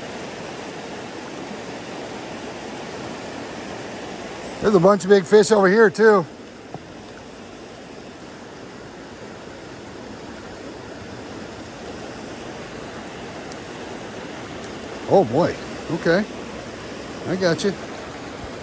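A river rushes and splashes over rocks nearby.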